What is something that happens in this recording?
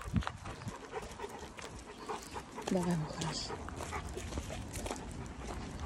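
A dog's paws crunch on gravel.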